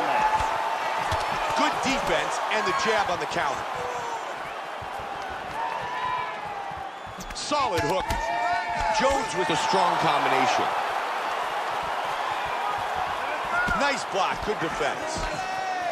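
Punches thud against a body.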